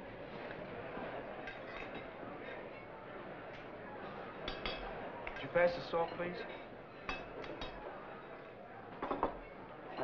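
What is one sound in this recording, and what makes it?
Plates and cutlery clink.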